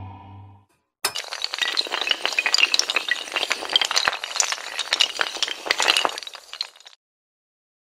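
Dominoes clatter rapidly as they topple one after another.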